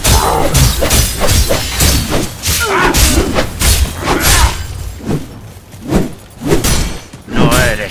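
Men grunt and shout as they fight.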